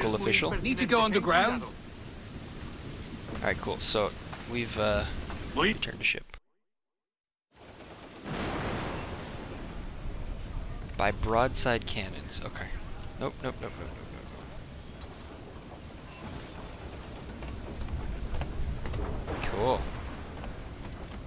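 A young man talks with animation close into a headset microphone.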